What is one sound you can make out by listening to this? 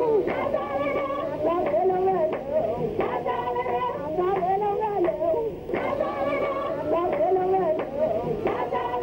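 A young man sings with feeling.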